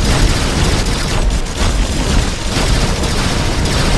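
Loud explosions boom.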